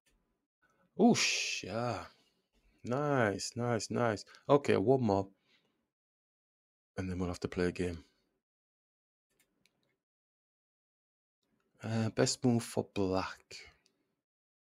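A man speaks calmly close to a microphone, in short bursts with pauses.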